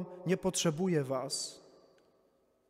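A middle-aged man speaks into a microphone, his voice ringing in a large echoing room.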